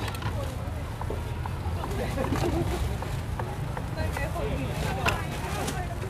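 A knife cuts on a plastic cutting board.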